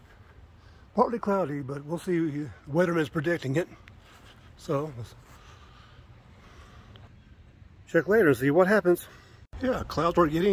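An older man speaks calmly, close to the microphone.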